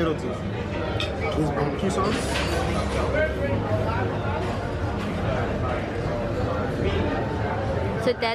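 A fork and knife clink against a plate.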